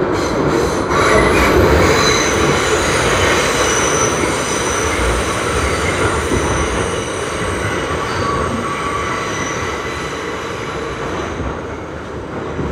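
A subway train rumbles and rattles along the rails, its roar slowly easing.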